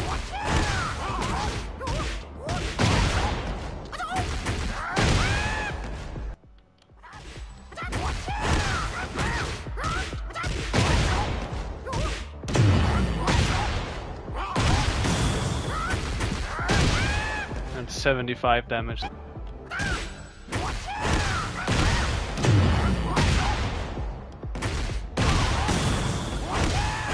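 Punches and kicks land with heavy, rapid thuds and cracks.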